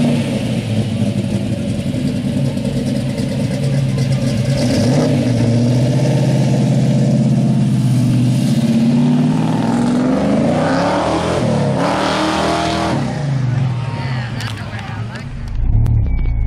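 A car engine idles with a deep, throaty rumble outdoors.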